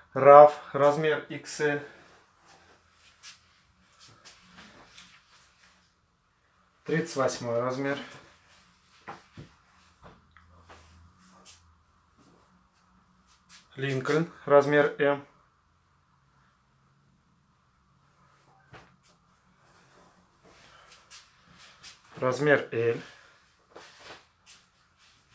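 Hands rustle and smooth shirts laid flat.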